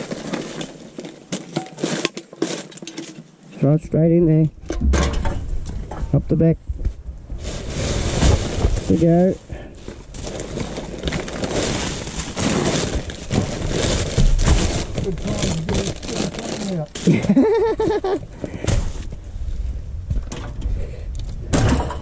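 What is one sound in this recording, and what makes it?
Metal cans clink and rattle.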